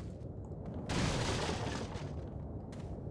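A handgun fires a single shot.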